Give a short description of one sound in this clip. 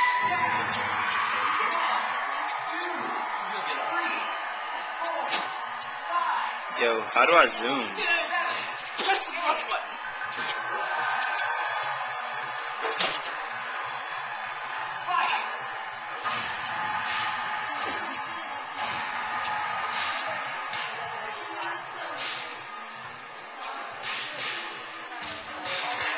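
A boxing video game plays loudly from a television.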